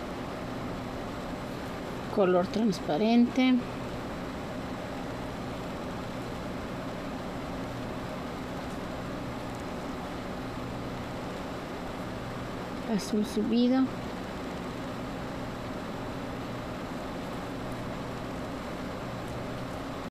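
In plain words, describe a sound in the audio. Small glass beads click softly as a needle and thread pass through them.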